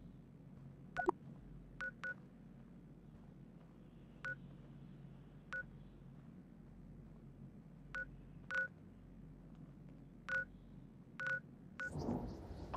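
Short electronic blips sound at intervals, as from a game's map menu.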